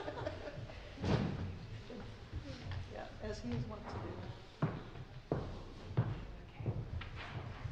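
Footsteps thud softly.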